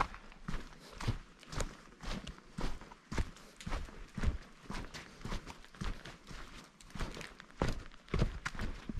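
Footsteps crunch steadily on a dirt trail outdoors.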